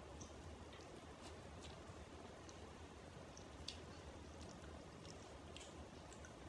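A young woman makes soft, wet mouth sounds close to the microphone.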